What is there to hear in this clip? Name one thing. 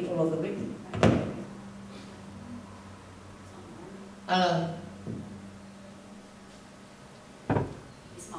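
A microphone thumps loudly as it is handled.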